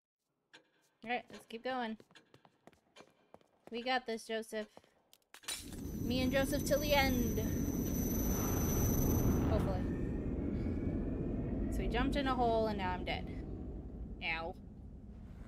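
A young woman talks with animation into a headset microphone.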